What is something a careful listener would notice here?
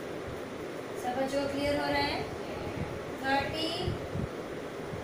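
A woman speaks calmly, close by, as if teaching.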